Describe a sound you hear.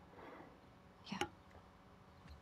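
A young woman answers briefly in a low voice.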